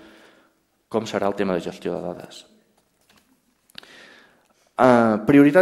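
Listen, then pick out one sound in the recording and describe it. A man speaks calmly into a microphone, giving a talk.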